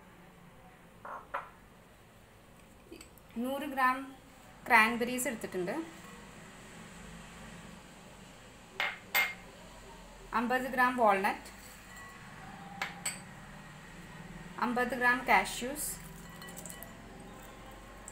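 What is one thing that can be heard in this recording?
Dried fruit and nuts tumble into a glass bowl.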